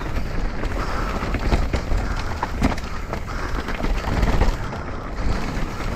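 Bike tyres rumble and crunch over a dirt trail.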